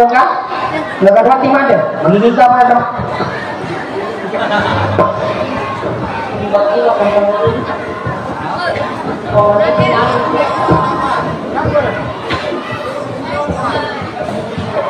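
A woman sings into a microphone.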